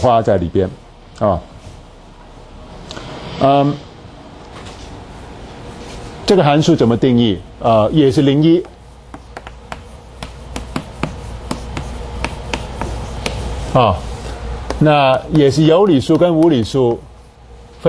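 A middle-aged man speaks calmly and clearly.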